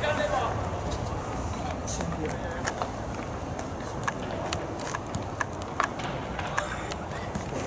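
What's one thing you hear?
Young players shout to each other in the distance outdoors.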